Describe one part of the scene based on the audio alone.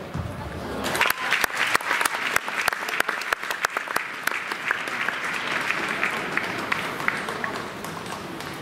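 A crowd claps and cheers loudly in a large hall.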